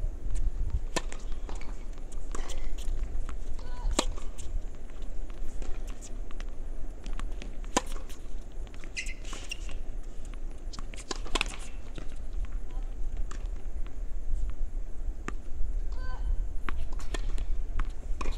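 Tennis balls are struck with rackets, with sharp pops.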